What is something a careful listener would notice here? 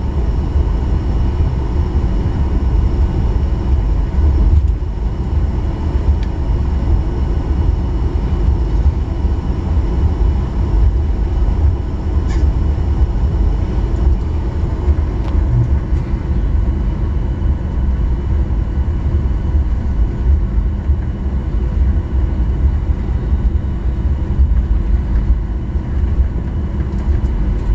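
Airplane wheels rumble over the runway.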